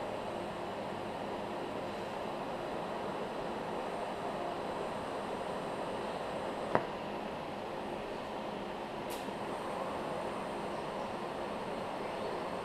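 An electric welder crackles and hisses steadily.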